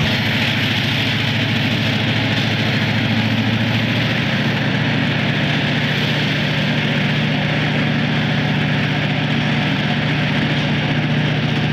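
Freight cars roll and clatter over the rails.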